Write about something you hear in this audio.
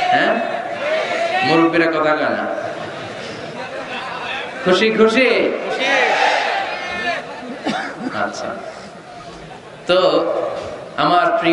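A man speaks passionately through a microphone and loudspeakers.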